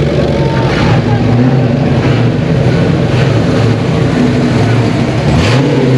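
A car engine rumbles loudly at idle, close by.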